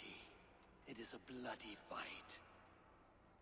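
A man speaks slowly in a deep, gravelly voice.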